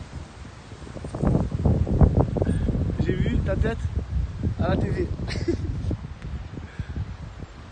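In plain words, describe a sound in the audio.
Wind gusts outdoors, rumbling against the microphone.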